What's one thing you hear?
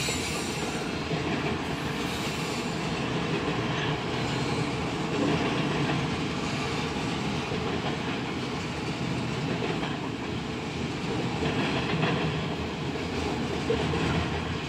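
A freight train rumbles past with steady clattering of wheels on rails.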